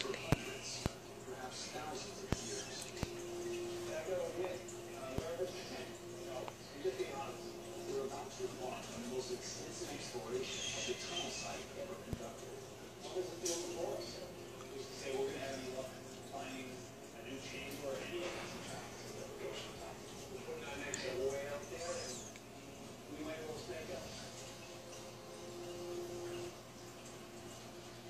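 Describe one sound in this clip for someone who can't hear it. A dog whines softly through its nose.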